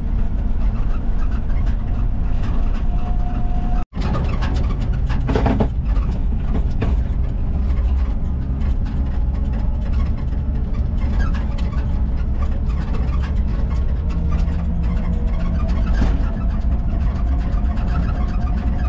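Tyres roll over a road with a low hum.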